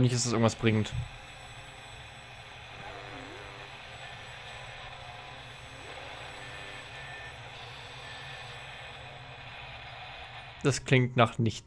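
A radio hisses with static.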